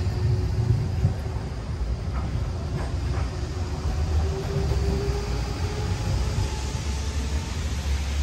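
A tram hums as it passes close by.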